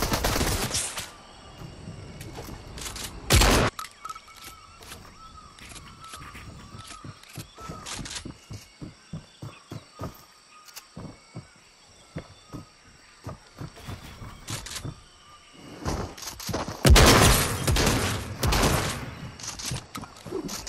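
A game character's footsteps patter on wood and grass.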